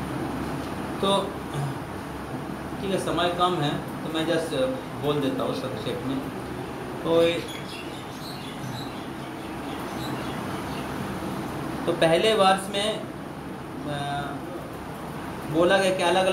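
A group of men speak and call out nearby.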